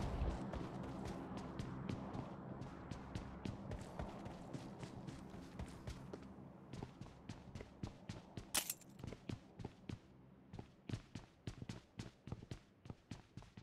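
Quick footsteps thud across the ground and floors.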